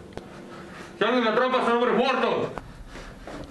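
A man speaks in a low, threatening voice close by.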